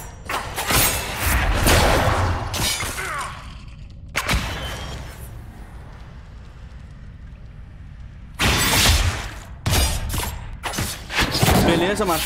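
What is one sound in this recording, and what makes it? Heavy impacts thud during combat.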